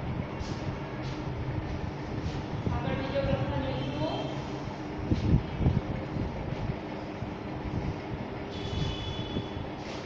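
A cloth rubs and wipes across a chalkboard.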